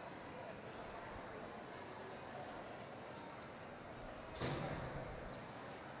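Roller skates roll and scrape across the floor.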